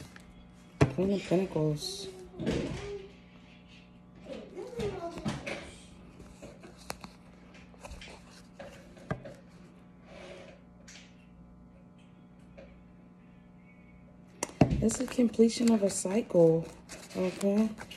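Paper banknotes rustle and flick as they are counted.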